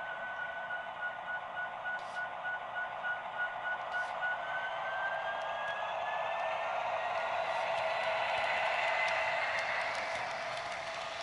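A model locomotive's bell rings rapidly, then its pitch rises as it passes.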